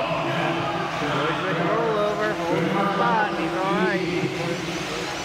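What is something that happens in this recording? Model car motors rev up and down in pitch.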